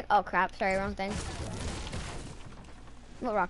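A gun fires in a quick burst.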